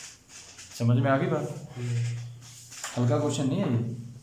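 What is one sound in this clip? Paper rustles as a sheet is turned over.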